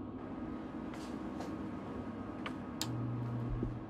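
A button clicks on a control panel.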